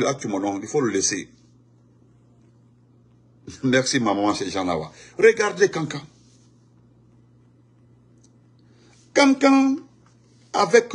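A man speaks with animation into a phone's microphone, close by, in short bursts with pauses.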